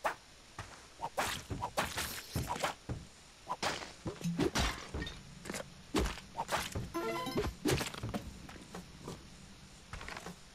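Short video game sound effects pop and thump in quick bursts.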